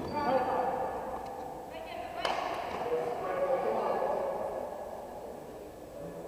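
Young people shout and call out across a large echoing hall.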